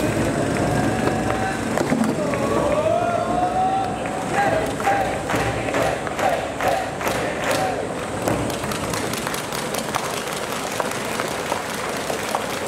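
A large crowd of students chants a cheer in unison outdoors.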